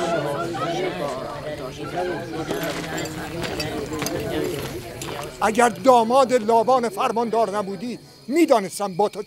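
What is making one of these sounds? An elderly man speaks sternly and loudly.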